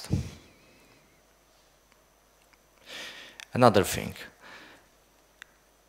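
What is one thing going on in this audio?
A man speaks into a microphone, pausing between phrases.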